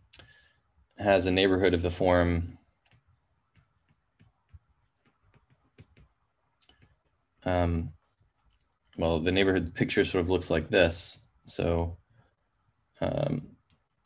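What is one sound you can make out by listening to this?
A man speaks calmly through a microphone, as if on an online call, in short phrases with pauses.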